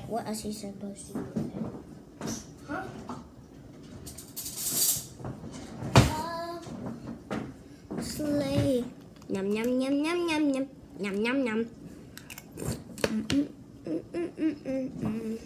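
A young girl speaks with animation close to the microphone.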